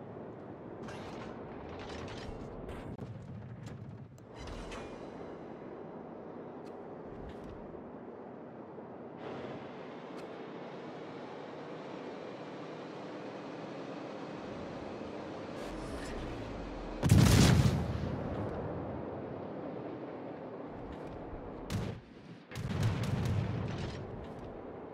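Water rushes steadily along a warship's hull as it sails.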